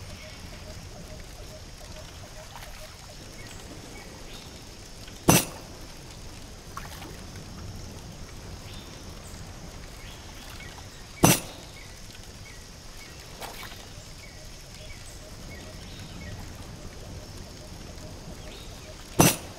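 Gentle waves lap on a shore.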